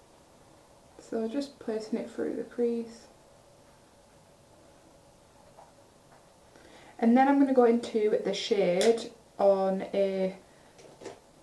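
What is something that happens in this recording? A young woman talks calmly and close to a microphone, in short bursts.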